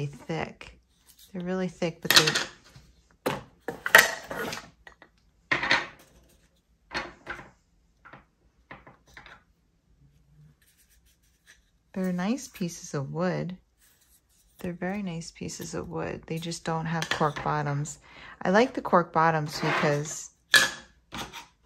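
Wooden coasters clack and tap together as they are handled and stacked.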